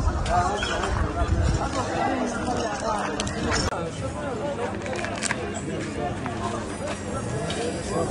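A crowd of men talk over one another nearby, outdoors.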